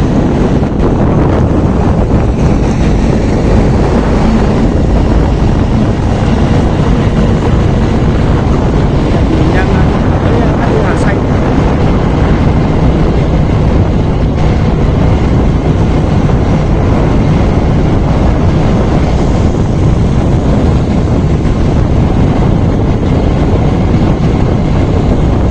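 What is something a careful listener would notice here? Wind rushes and rumbles loudly past while moving along outdoors.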